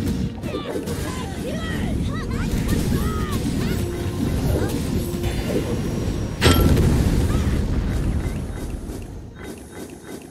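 Magic blasts and hits crash and boom in a fierce fight.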